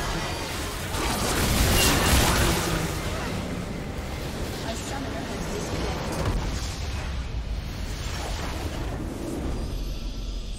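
Game combat sounds clash and burst loudly.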